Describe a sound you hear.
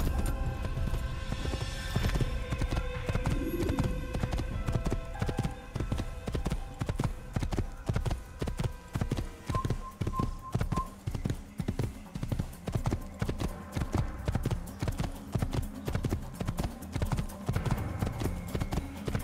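A horse gallops with rhythmic hoofbeats on a dirt path.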